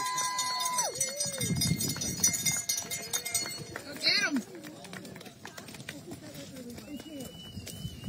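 Runners' footsteps crunch on gravel.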